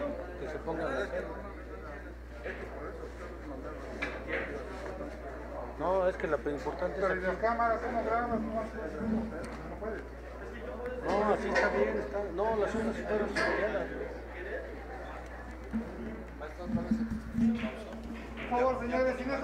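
Several men and women chat in a lively, echoing hall.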